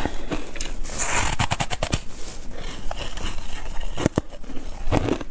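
A young woman chews crunchily close to a microphone.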